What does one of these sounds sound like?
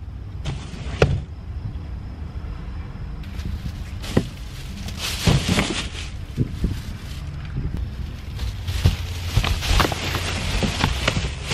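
Items thump down into a car boot.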